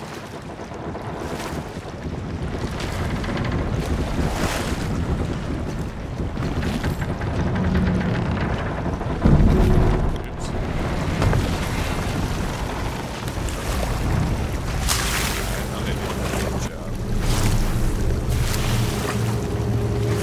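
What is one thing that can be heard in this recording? Waves wash and splash against a wooden boat's hull.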